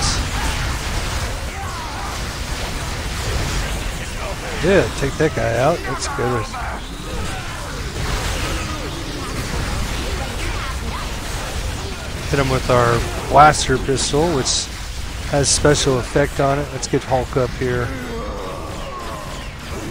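Energy blasts crackle and zap in a busy fight.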